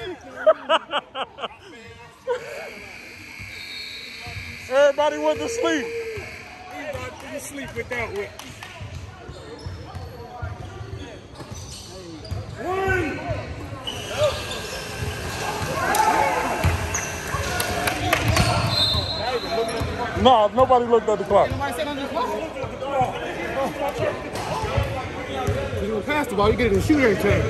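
Several men talk and call out in a large echoing gym.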